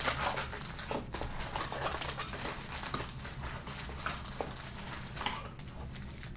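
Cards rustle and slide as they are pulled from a pack.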